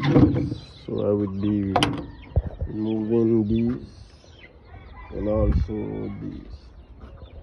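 Pigeons coo in deep, throaty bursts nearby.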